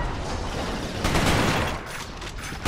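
A rifle magazine clicks during a reload.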